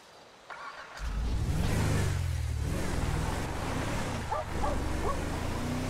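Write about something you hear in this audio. A car engine starts and revs loudly as the car drives off.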